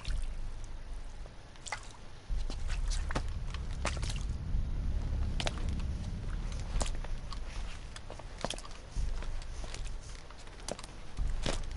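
Heavy boots step on a hard floor.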